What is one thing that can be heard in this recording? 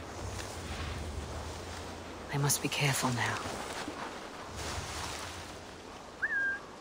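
Footsteps rustle through tall grass and bushes.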